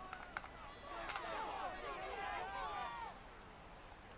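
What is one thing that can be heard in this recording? A large crowd roars and cheers loudly.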